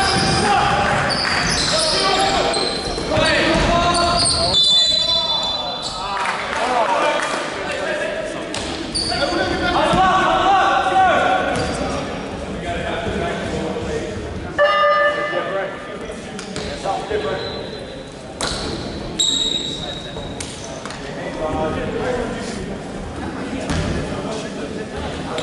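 Players shout and call out across the court.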